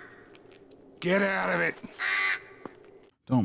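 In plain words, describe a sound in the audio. A man shouts hoarsely in a film playing over speakers.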